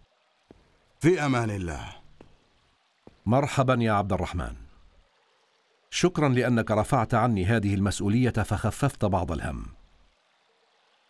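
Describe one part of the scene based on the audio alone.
A man speaks with a deep, forceful voice, close by.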